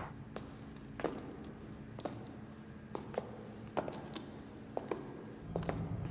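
Footsteps thud down stone stairs.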